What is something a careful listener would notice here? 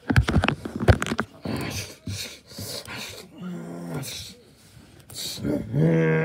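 Plastic toy figures knock together.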